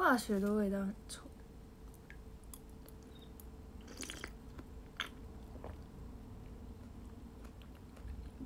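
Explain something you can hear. A spoon clinks softly against a bowl.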